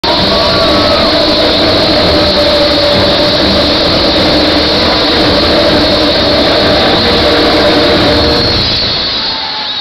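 Loud live music plays through a powerful sound system in a large open space.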